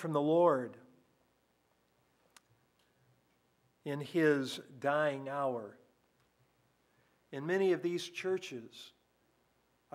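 An elderly man speaks slowly and earnestly through a microphone, with pauses between phrases.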